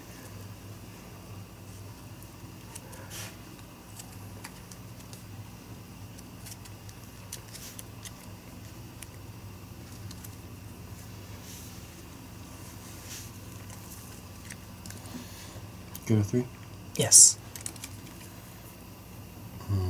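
Playing cards are shuffled and flicked softly, close by.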